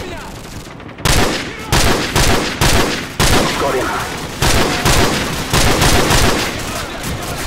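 Rifle shots crack repeatedly.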